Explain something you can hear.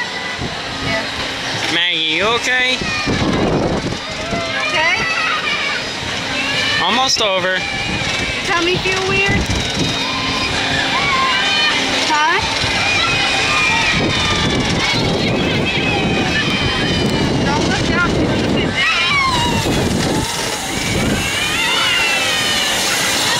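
A little girl chatters close by.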